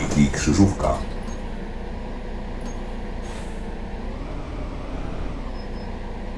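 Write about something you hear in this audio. A diesel city bus engine idles.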